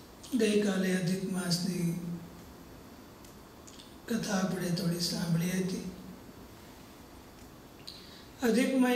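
A man chants slowly and calmly into a microphone, in long sustained phrases with pauses between them.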